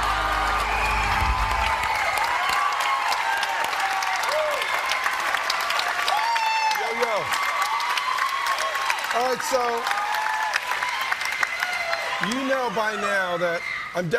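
A large crowd cheers and applauds loudly in a big echoing hall.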